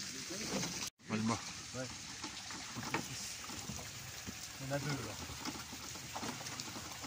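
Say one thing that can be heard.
A man talks in short bursts nearby.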